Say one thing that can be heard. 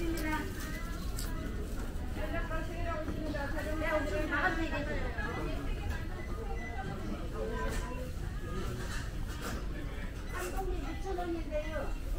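Shoppers talk in low voices nearby.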